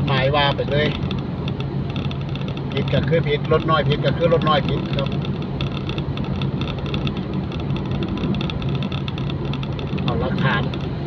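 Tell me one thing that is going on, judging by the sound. A car engine hums at cruising speed, heard from inside the car.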